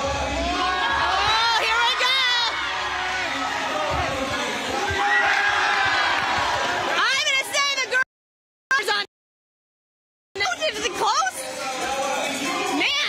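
A large crowd of young people cheers and screams loudly in an echoing hall.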